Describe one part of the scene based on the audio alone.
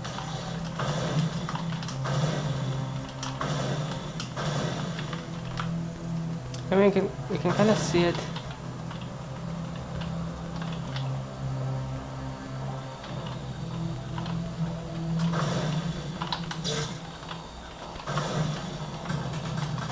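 Keys on a keyboard click and clatter rapidly.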